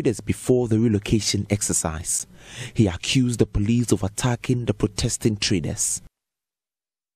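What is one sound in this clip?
A man speaks with animation into a microphone close by.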